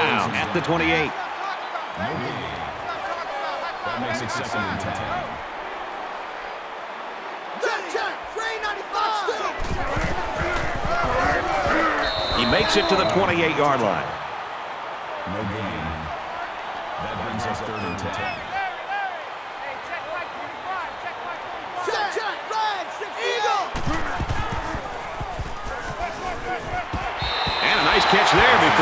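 A stadium crowd cheers and roars, swelling near the end.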